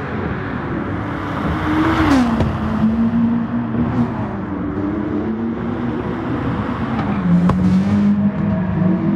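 A race car engine roars loudly, its pitch dropping and rising as it shifts gears.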